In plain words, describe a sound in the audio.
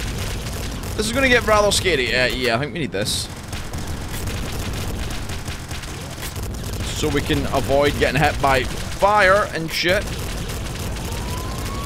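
Rapid electronic gunfire and blasts sound from a video game.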